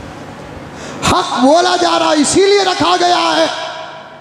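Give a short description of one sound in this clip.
A man preaches with animation into a microphone, his voice rising into a sung chant.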